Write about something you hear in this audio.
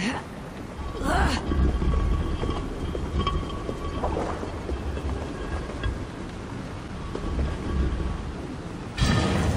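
A heavy stone block scrapes and grinds as it is pushed across a stone floor.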